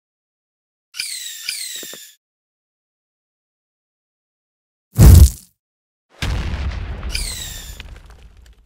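Balloons inflate with squeaky pops in a game.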